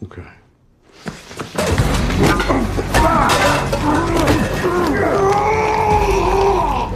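People scuffle and struggle violently with thumps and rustling.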